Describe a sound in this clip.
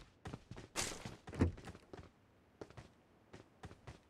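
A door bangs shut.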